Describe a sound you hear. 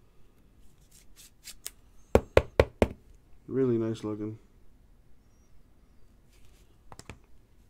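Cards in plastic sleeves rustle and tap close by.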